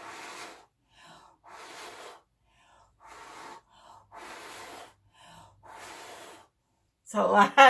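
A person blows air in short, repeated puffs close by.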